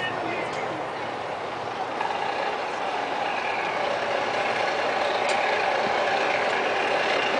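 A marching band plays brass instruments outdoors in a large stadium.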